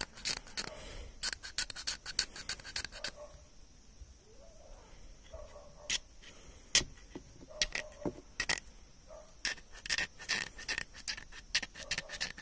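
A knife blade scrapes and shaves hard plastic in quick strokes.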